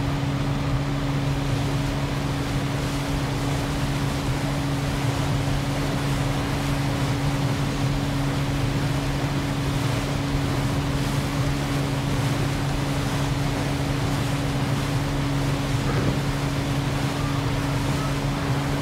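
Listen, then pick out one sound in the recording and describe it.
Water splashes and rushes against a speeding boat's hull.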